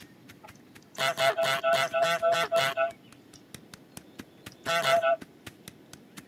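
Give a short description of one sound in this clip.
A goose honks loudly several times.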